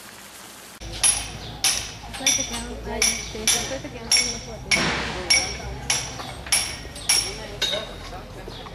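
A hammer strikes brick in sharp, regular blows outdoors.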